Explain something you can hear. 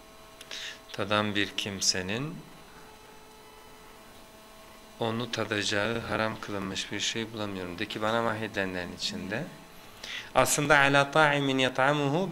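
A man speaks calmly into a close microphone, with pauses.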